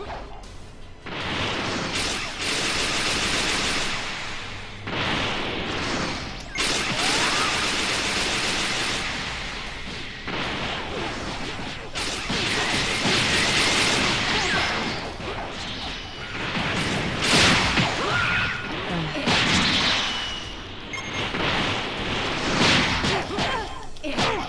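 Energy blasts fire and burst with loud whooshing roars.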